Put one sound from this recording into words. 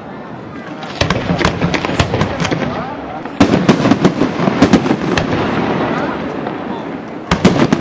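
Fireworks crackle and sizzle as sparks fall.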